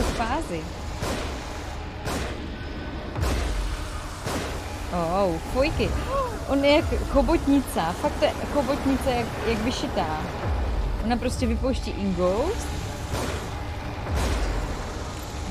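Gunshots bang.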